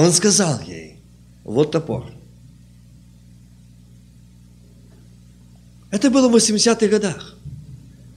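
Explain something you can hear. A middle-aged man speaks with emphasis into a microphone, with long pauses.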